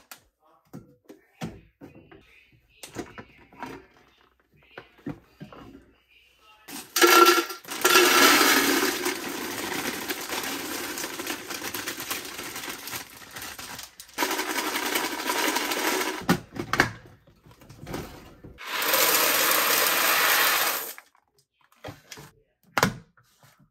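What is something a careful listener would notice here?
Plastic lids click and clack as containers are handled.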